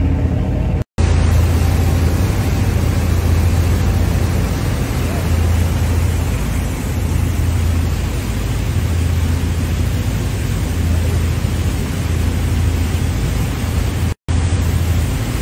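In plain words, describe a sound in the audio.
A boat engine drones steadily and loudly close by.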